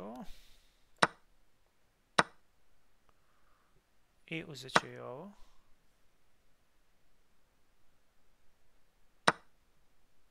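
Short sharp clicks sound as chess pieces are moved.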